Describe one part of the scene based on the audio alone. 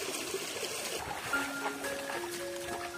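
A man splashes water over his body.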